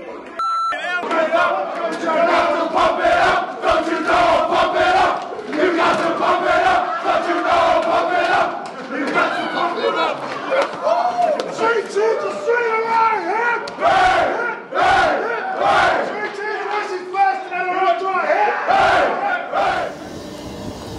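Young men sing together in a loud chant.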